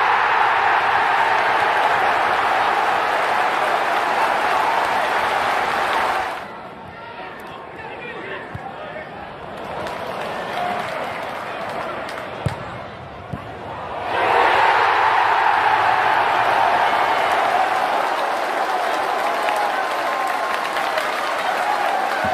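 A large stadium crowd cheers and roars after a goal.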